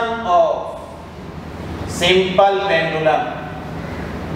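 A man speaks calmly, like a teacher explaining.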